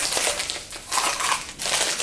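A wrapped snack rustles as it is dropped into a metal tin.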